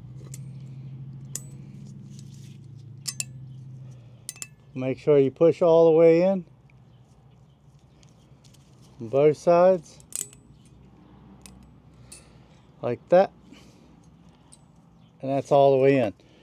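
Metal parts clink softly as they are handled.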